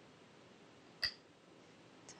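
A go stone clicks sharply onto a wooden board.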